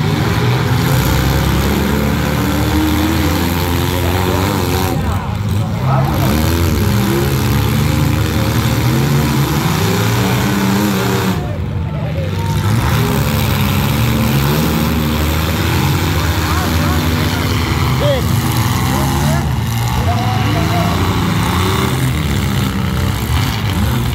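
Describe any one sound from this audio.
Car engines roar loudly and rev nearby.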